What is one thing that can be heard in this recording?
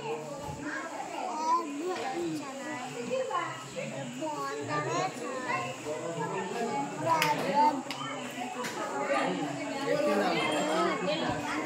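Several women and men chatter indoors.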